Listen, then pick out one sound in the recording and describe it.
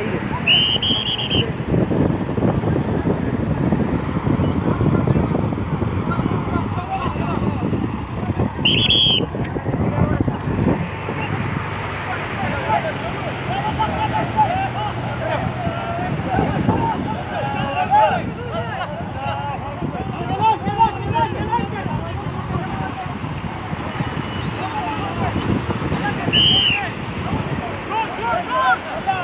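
Waves crash on a beach.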